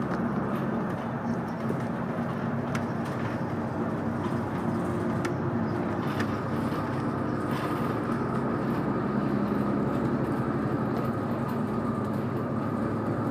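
A vehicle's engine hums steadily from inside.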